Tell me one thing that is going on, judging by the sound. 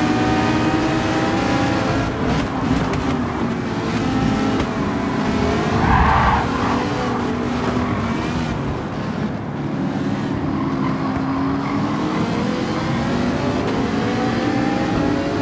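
A racing car engine roars, its pitch falling as the car slows and then climbing again as it speeds up.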